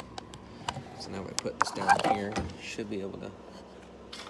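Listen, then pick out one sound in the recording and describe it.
A metal can knocks and scrapes as it is handled.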